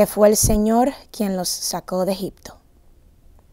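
A young woman reads aloud calmly into a microphone.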